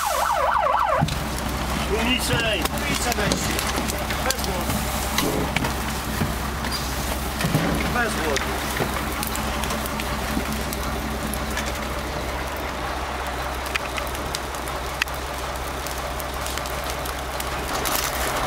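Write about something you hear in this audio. Burning grass crackles and pops.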